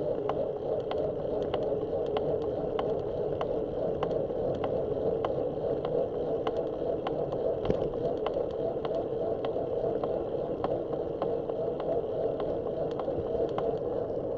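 Tyres hum steadily on smooth asphalt.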